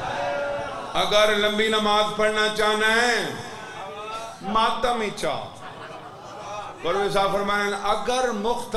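A man chants in a long, wailing melody through a microphone.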